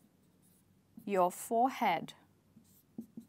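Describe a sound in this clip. A young woman speaks briefly and clearly, close by.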